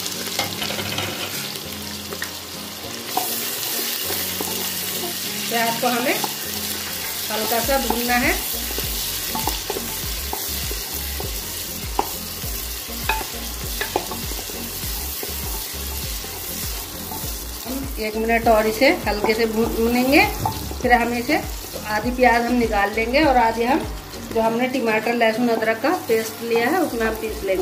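Oil sizzles and crackles steadily as onions fry.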